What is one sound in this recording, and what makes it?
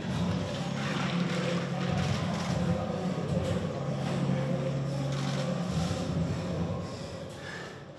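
Water is poured and splashes onto a man's head.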